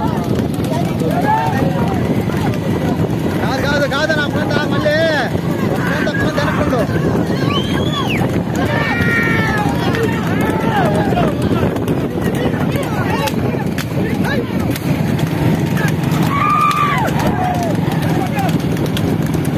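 Men shout and whoop excitedly outdoors.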